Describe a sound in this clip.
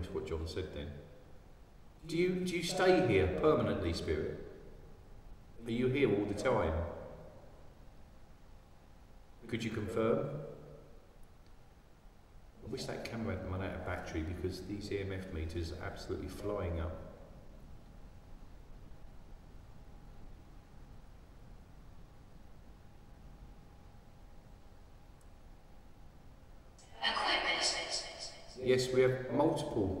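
A middle-aged man talks calmly in short bursts, with pauses.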